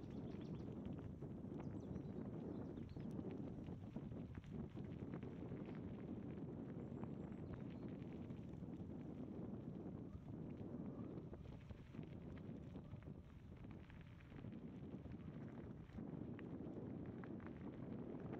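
Tyres crunch and rattle over a gravel road.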